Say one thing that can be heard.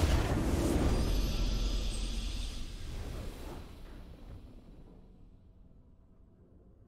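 A bright victory fanfare swells and slowly fades away.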